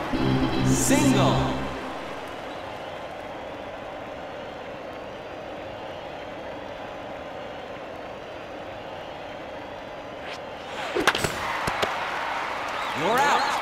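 A baseball smacks into a leather glove.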